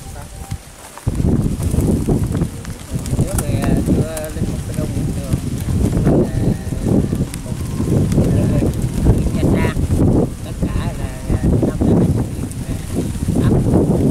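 An older man speaks with animation outdoors, close by.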